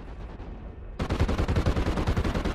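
A heavy gun fires in rapid, loud bursts.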